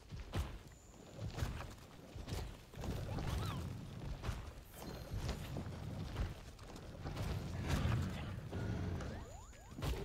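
A huge monster growls and stomps heavily.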